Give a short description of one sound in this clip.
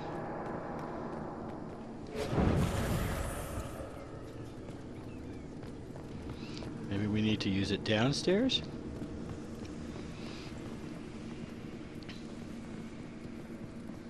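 Footsteps patter quickly on stone floors.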